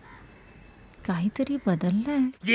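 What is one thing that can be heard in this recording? A woman speaks softly and earnestly, close by.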